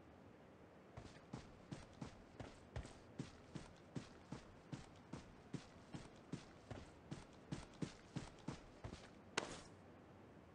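Footsteps crunch quickly through grass.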